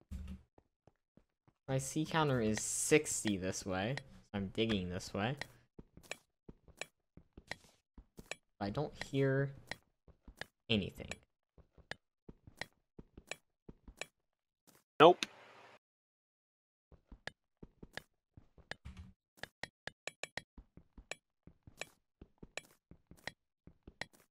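A pickaxe chips at stone with quick, repeated taps.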